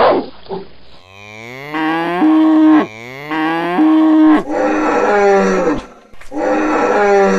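A dinosaur roars.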